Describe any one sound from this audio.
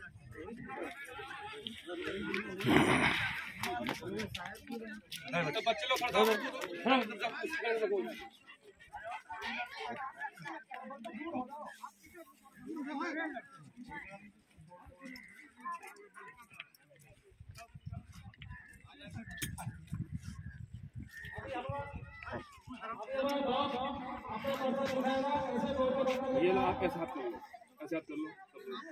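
Men talk and call out nearby in an outdoor crowd.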